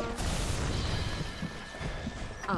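Electricity crackles and buzzes in a sharp burst.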